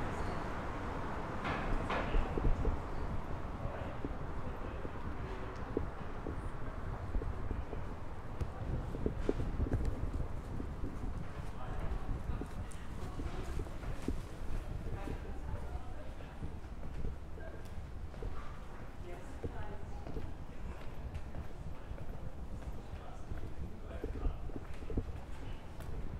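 Light wind blows outdoors in a quiet street.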